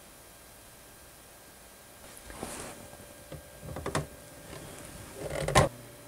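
Metal parts click and tap together.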